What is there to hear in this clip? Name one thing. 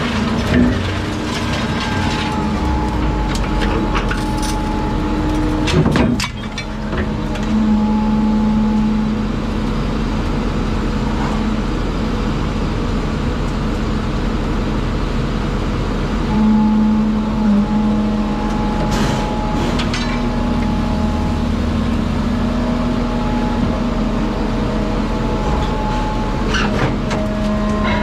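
A heavy machine hums and drones steadily.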